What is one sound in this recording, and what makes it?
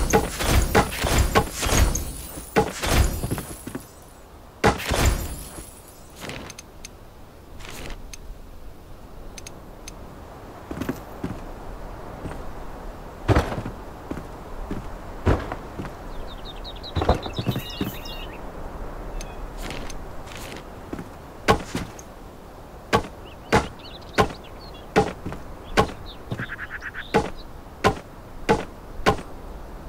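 Wooden blocks knock into place with short, sharp thuds, one after another.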